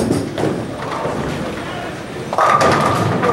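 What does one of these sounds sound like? A bowling ball rumbles down a lane in an echoing hall.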